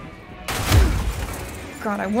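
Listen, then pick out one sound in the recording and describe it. A loud explosion bursts.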